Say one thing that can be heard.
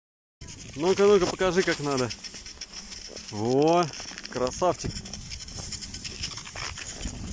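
Skis swish and scrape over snow.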